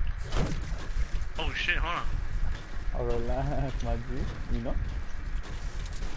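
A pickaxe strikes a wall with sharp knocks.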